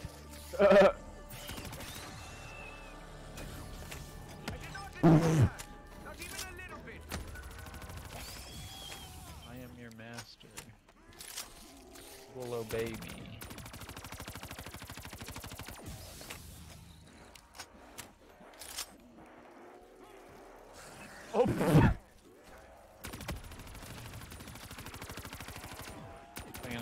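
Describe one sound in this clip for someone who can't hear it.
A young man talks into a close microphone, with animation.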